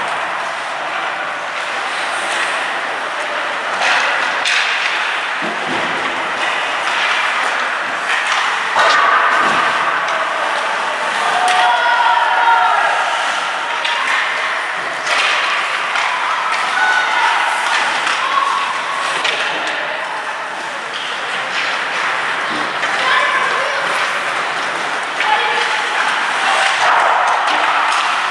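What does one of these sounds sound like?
Young players call out to each other from across an echoing rink.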